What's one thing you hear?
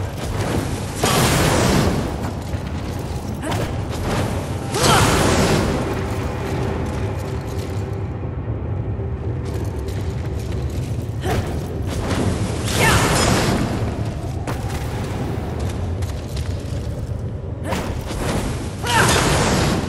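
Flames burst up with a loud roaring whoosh, again and again.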